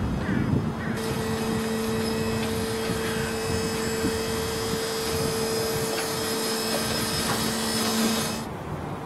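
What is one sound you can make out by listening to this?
An electric truck hums with a steady whine as it rolls slowly past.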